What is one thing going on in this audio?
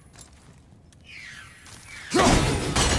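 An axe whooshes through the air.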